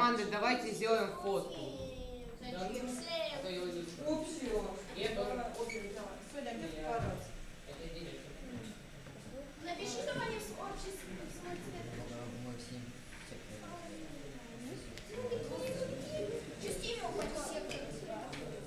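Children chatter and talk nearby in a room.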